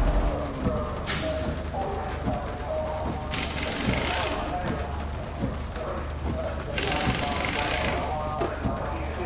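Windscreen wipers swish across wet glass.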